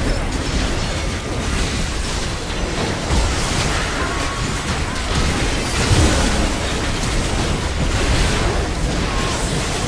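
Video game combat effects clash and crackle.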